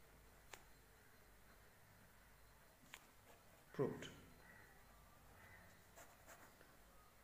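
A pen scratches softly across paper as it writes.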